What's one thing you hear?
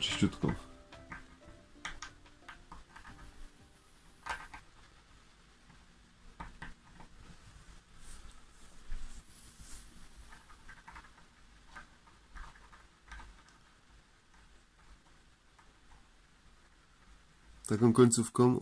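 A sharp tool scratches lightly and quietly across a sheet.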